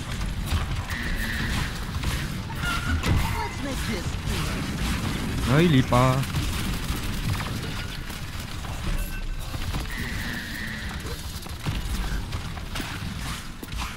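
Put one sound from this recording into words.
Weapons fire rapidly with crackling energy blasts.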